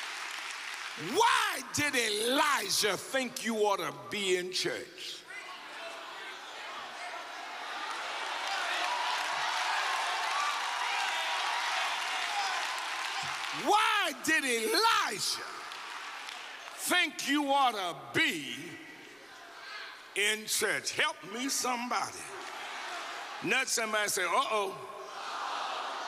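An older man speaks with feeling through a microphone in a large hall.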